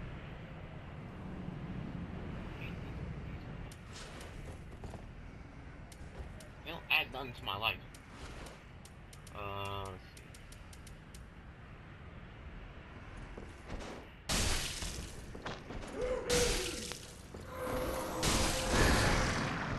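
Metal armour clinks with heavy footsteps on stone.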